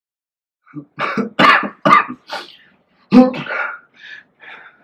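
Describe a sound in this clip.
A young man coughs hard, close by.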